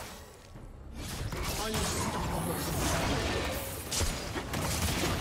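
Game sound effects of magic attacks crackle and clash loudly.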